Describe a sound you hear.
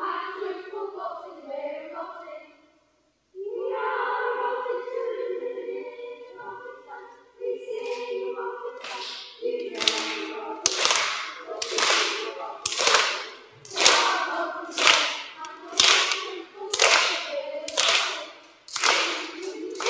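A choir of children sings in a large echoing hall.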